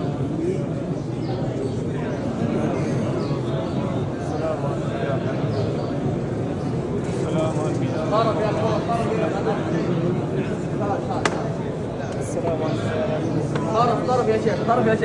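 A crowd of men and women murmur and talk nearby in a large echoing hall.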